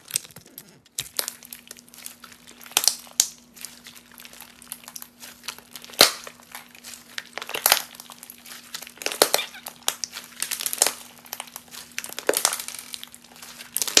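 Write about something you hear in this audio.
Sticky slime crackles and squelches as hands stretch and fold it.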